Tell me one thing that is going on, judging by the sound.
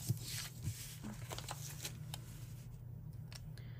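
Paper pages rustle and slide under hands.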